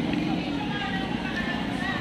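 A motor scooter drives past.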